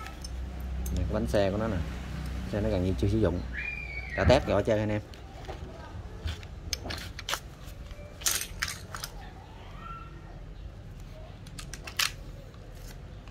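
Small metal tool parts click and clink as they are handled.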